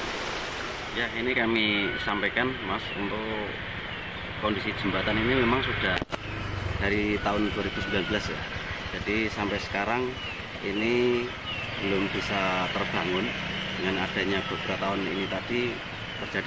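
A man speaks calmly outdoors, close to a microphone.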